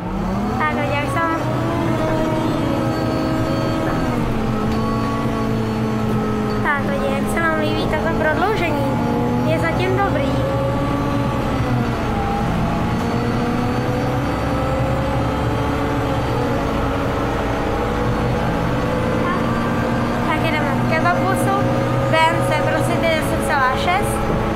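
A bus engine hums steadily while the bus drives.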